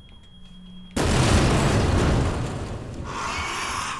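A gun fires a loud shot that echoes.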